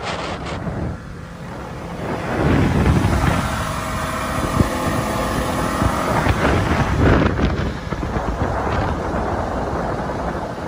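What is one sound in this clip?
A boat's outboard motor drones steadily.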